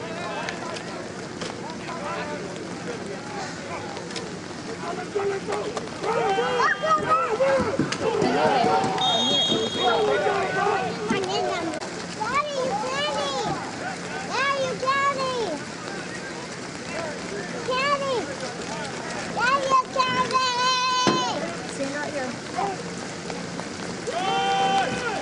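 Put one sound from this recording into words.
A crowd shouts and cheers loudly outdoors.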